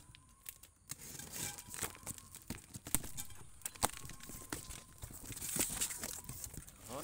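Cardboard flaps rustle and scrape as a box is pulled open.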